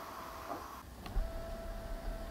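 A car's boot lid closes with a soft thud.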